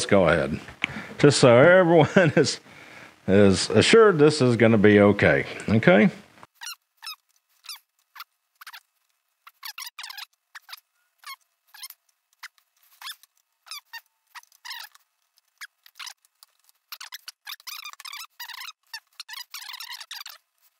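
Metal test probes tap and scrape against an outlet's contacts.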